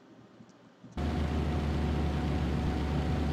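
A truck engine drones loudly and steadily.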